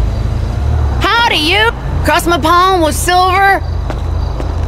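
A woman speaks loudly and with animation, close by.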